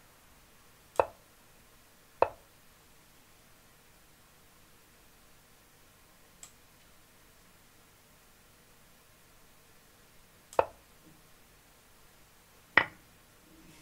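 A chess program plays short click sounds as pieces are moved.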